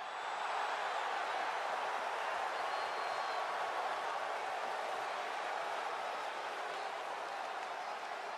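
A large crowd cheers and roars steadily in a big arena.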